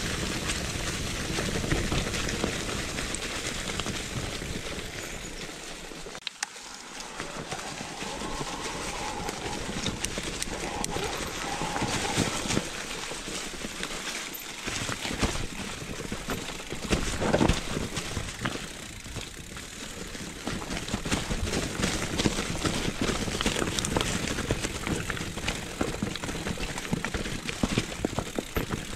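Bicycle tyres crunch and rustle over dry leaves and dirt.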